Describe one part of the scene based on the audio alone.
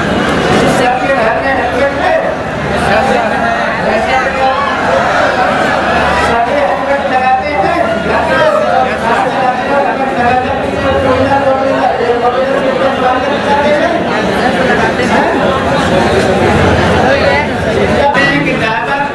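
A large crowd of young men chants loudly in unison outdoors.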